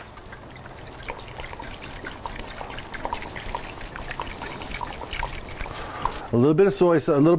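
Liquid pours and splashes into a plastic cup.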